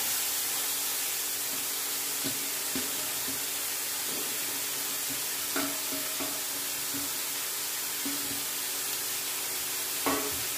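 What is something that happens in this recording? A metal spatula scrapes and taps against a pan while stirring.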